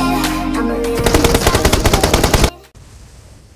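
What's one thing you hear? An automatic rifle fires in a rapid burst.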